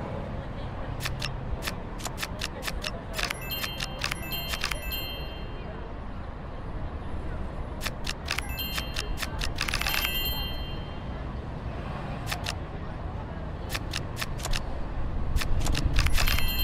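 Playing cards snap into place with quick, crisp clicks.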